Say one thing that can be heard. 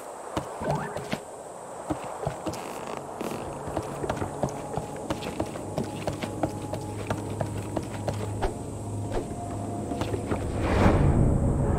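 Footsteps tap steadily on a wooden walkway.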